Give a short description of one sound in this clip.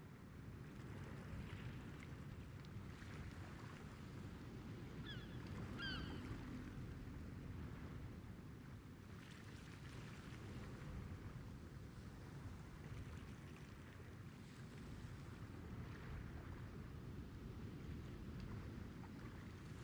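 Water laps gently against a ship's hull.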